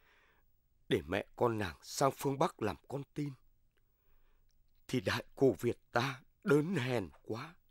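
A woman speaks softly in a tearful voice.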